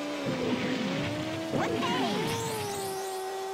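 Game sound effects swoosh and chime.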